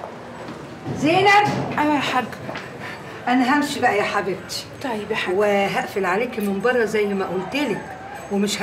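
An older woman speaks with animation, close by.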